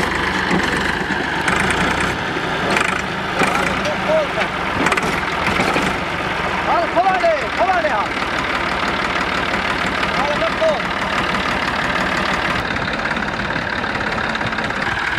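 A tractor engine idles with a steady diesel rumble.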